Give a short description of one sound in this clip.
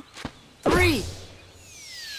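A cartoon boing sounds as something is flung into the air.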